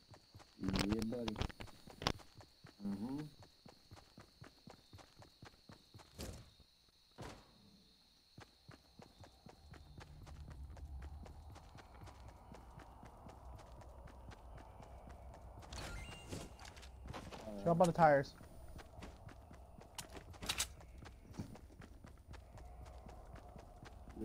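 Quick footsteps patter steadily on grass.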